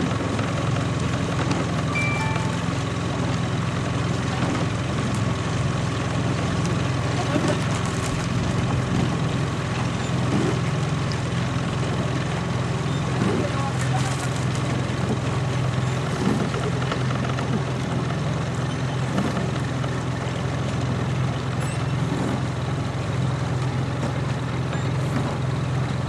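Oars splash and pull through water in a steady rhythm.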